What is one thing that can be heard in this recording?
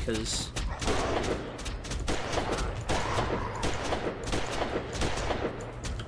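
A revolver fires sharp, loud shots.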